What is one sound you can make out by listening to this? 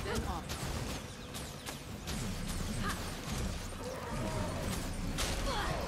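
Magic spells crackle and burst in quick, repeated blasts.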